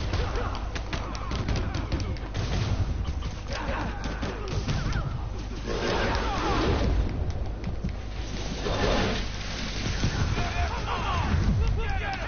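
Punches and kicks thud in a fast brawl.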